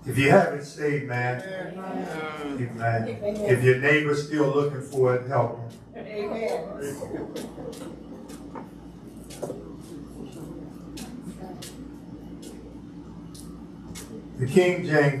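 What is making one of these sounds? An elderly man speaks calmly and steadily through a microphone.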